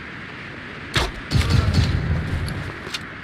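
A rifle fires a single loud shot that booms and rumbles away.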